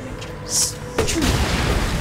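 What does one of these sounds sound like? A single loud gunshot booms.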